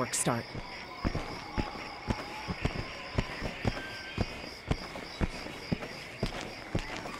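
Footsteps tread steadily on hard ground.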